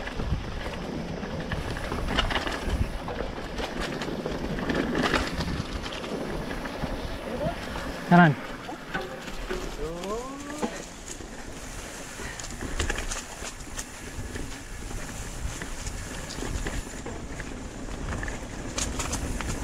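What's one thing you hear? Bicycle parts rattle and clatter over bumps.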